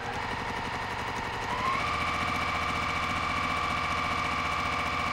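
A sewing machine hums and stitches rapidly, speeding up briefly.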